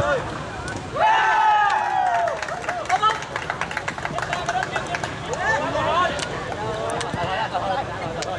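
A crowd of spectators cheers outdoors.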